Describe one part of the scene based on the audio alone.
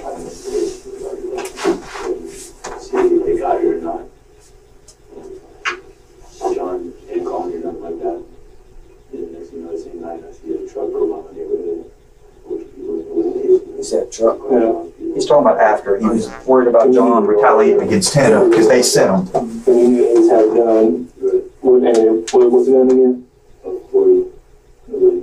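A man talks calmly.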